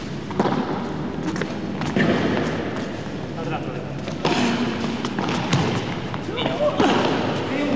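A ball bounces off the court and the glass walls.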